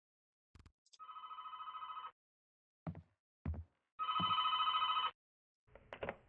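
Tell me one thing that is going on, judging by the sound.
A telephone rings in short bursts.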